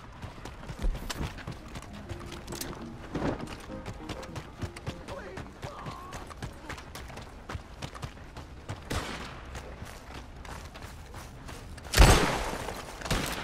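Footsteps crunch on a dirt road.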